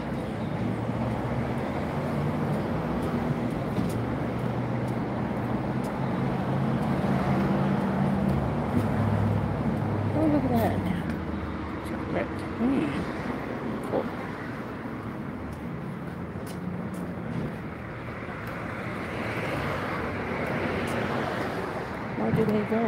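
Traffic rumbles along a nearby street outdoors.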